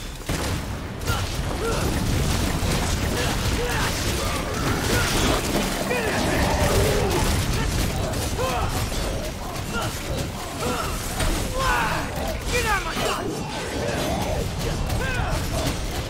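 Blades clash and slash in rapid strikes.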